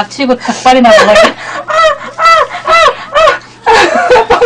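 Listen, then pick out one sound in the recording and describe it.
A young woman laughs loudly and shrieks close to a microphone.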